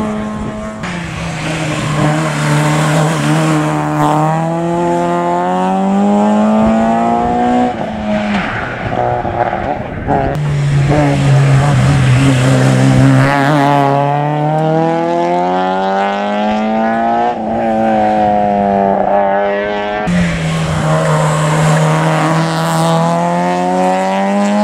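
Rally car engines rev hard and roar past, one after another, rising and falling in pitch.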